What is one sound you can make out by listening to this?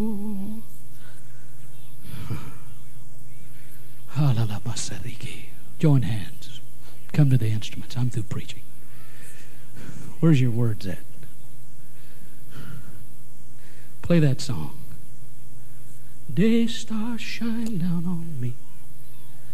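A middle-aged man speaks into a microphone with pauses, his voice carried over a loudspeaker.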